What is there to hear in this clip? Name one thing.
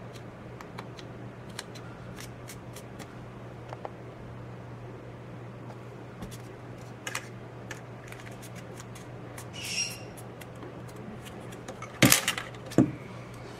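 Stiff paper rustles and crinkles as hands fold it.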